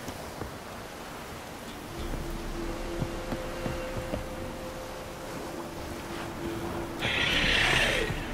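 Footsteps thud on wooden planks.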